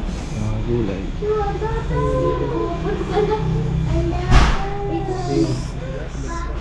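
A young child talks in a high voice nearby.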